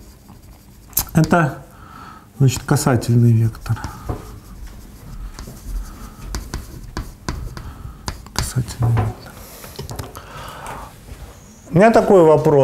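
A man speaks steadily, with pauses.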